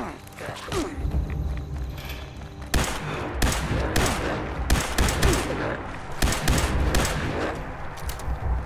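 A laser rifle fires a rapid string of sharp shots.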